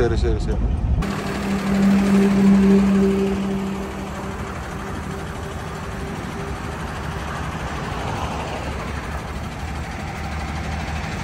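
A parked truck's engine idles outdoors.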